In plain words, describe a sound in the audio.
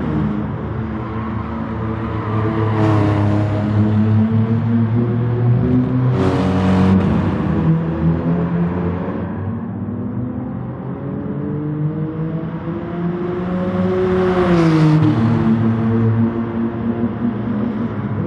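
A race car engine roars loudly, its pitch rising and falling as it shifts gears.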